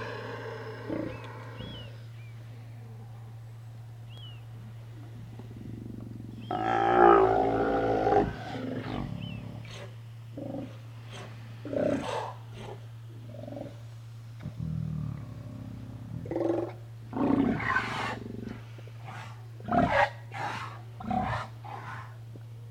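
Sea lions bark and growl loudly nearby.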